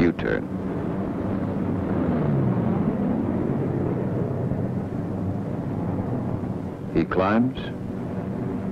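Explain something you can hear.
Propeller aircraft engines drone steadily.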